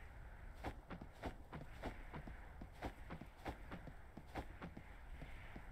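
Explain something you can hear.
Quick footsteps patter on dirt.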